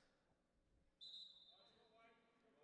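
A group of young men shout together in a short cheer.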